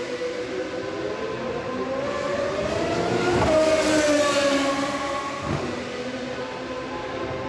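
Another racing car engine whines in the distance and then roars close by.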